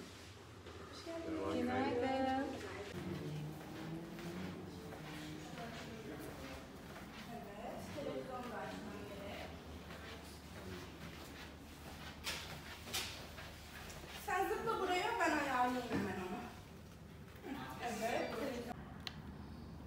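A woman speaks nearby in a conversational voice.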